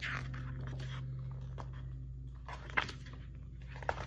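Book pages turn with a soft rustle.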